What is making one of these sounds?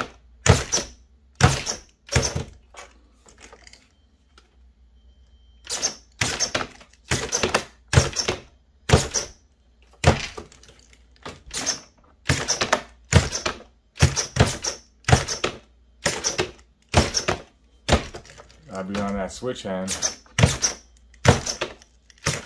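A small model car's hydraulic motors whir in short, sharp bursts.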